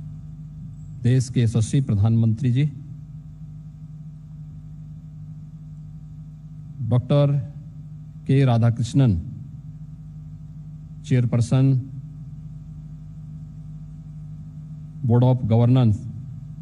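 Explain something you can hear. A middle-aged man speaks slowly and forcefully into a microphone, in short phrases with long pauses, heard through a loudspeaker.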